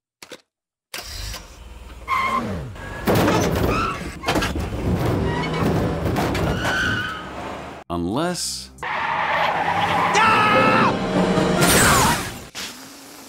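A car engine revs as the car drives off.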